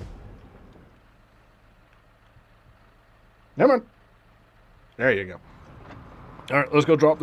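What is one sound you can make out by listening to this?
A truck engine idles with a low, steady hum.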